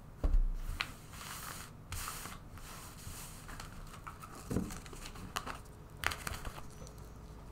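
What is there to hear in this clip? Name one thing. Cards shuffle and slide against each other.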